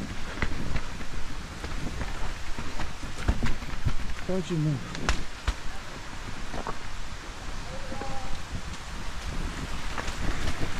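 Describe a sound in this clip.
Bicycle tyres roll and crunch over a rough dirt trail.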